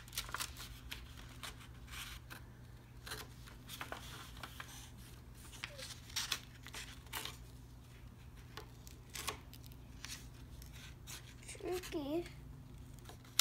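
Scissors snip through paper in short crisp cuts.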